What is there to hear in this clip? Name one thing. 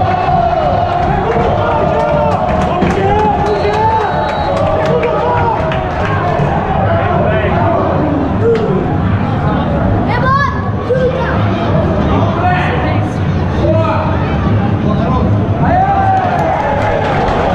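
Fans clap their hands sharply nearby.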